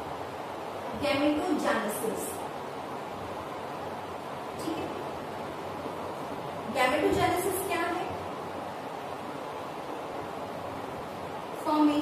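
A young woman speaks calmly, close by, as she explains.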